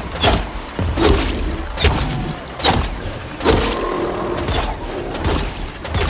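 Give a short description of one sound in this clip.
A monster growls and snarls up close.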